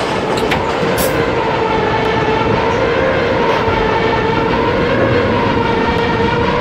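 A train's electric motor whines steadily.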